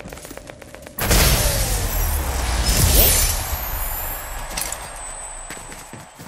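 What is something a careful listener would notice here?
A triumphant victory fanfare bursts out loudly and slowly fades.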